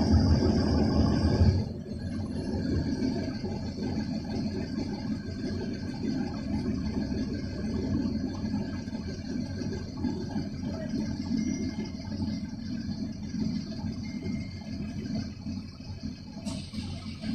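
A bus engine rumbles low and steady from inside the vehicle.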